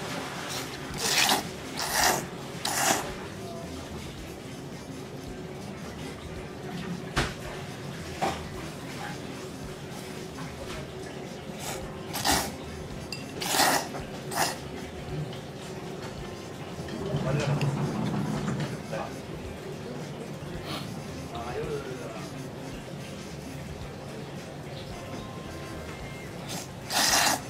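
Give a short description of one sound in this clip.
A man slurps noodles loudly, in short bursts.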